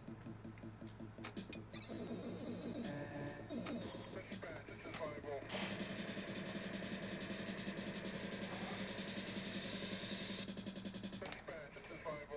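Electronic pinball jingles and chimes play loudly.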